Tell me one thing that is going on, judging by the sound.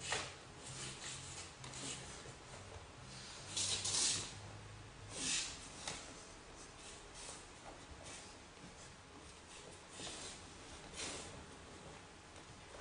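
Bare feet shuffle and thump on a padded mat.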